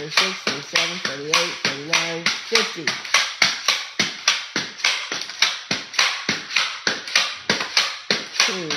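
A child's feet stamp and thump on a hard floor while dancing.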